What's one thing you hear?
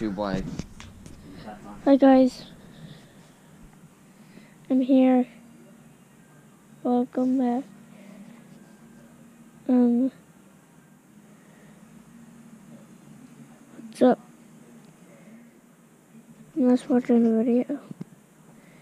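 A young boy speaks close to the microphone in short bursts.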